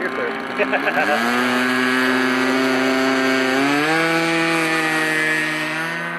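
A small model plane engine buzzes steadily and then revs higher.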